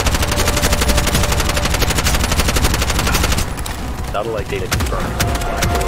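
An automatic rifle fires in rapid bursts, then in single shots.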